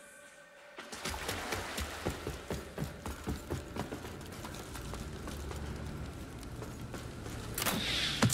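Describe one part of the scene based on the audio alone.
Footsteps thud on stone floors.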